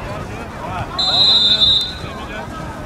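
A referee's whistle blows once, short and shrill.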